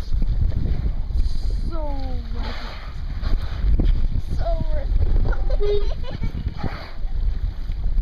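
A whale exhales with a loud, hissing blow from the water nearby.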